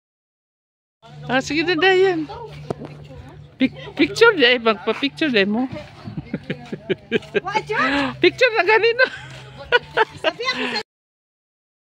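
A group of young people talk and laugh nearby outdoors.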